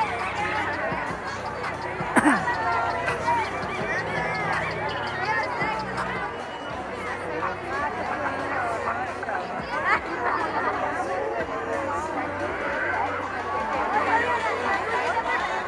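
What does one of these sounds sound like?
A large crowd of children and adults chatters and shouts excitedly outdoors.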